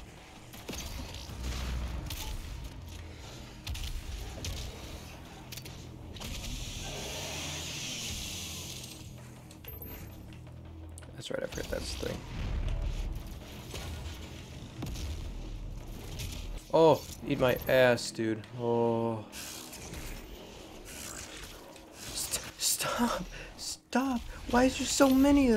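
Demons growl and roar.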